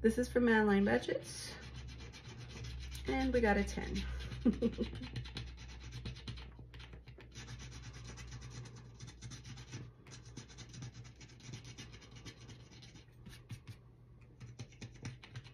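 Fingers rub and scrape softly at a sticker sheet.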